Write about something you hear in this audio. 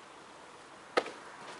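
A plastic grass catcher clunks sharply onto a lawn mower.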